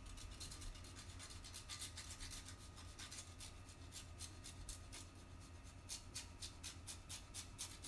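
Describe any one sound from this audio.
Cheese rasps against a grater.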